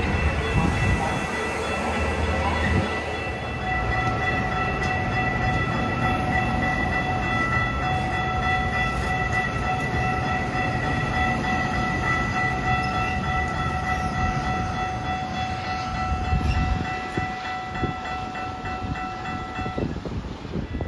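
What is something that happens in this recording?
A train's motor gives off a steady high whine as it pulls away.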